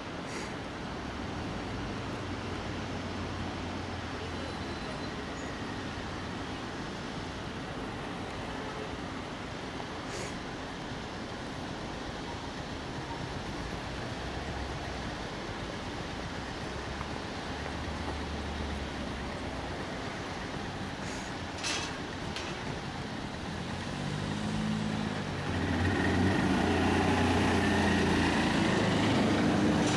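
A motorcycle engine rumbles close by and grows louder as it nears.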